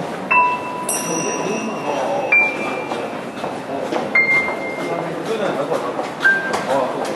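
A keyboard plays bright synth notes through loudspeakers.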